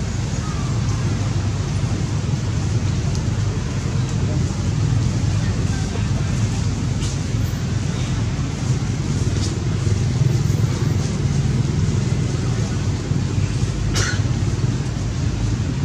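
A monkey chews and smacks its lips on food.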